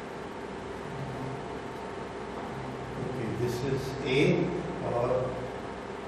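A man speaks calmly, like a lecturer, nearby in a room.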